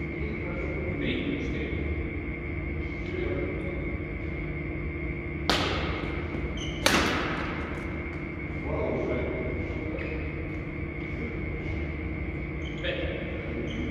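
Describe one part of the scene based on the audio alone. A badminton racket hits a shuttlecock with a sharp pop that echoes through a large hall.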